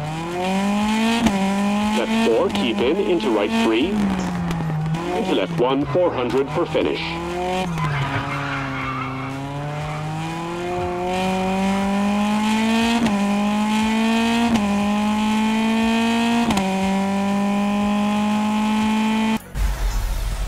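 A rally car engine roars and revs up through the gears.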